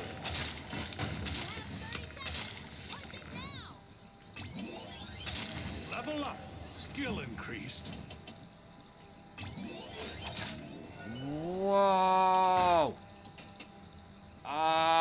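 Pinball flippers and bumpers click and knock rapidly.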